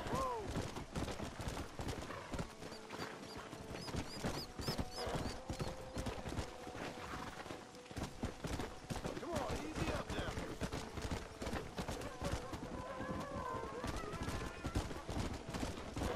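Horse hooves thud steadily on a dirt trail.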